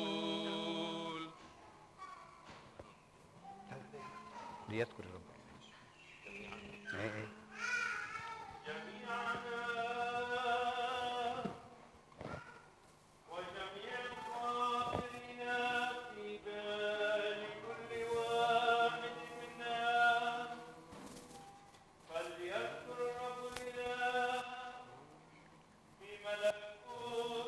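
A man chants in a slow, sustained voice through a microphone in a large echoing hall.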